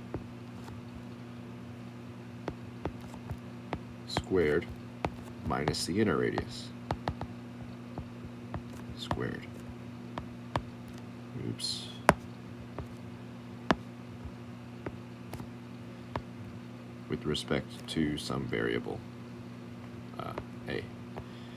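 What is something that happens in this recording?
A stylus taps and scratches on a tablet's glass.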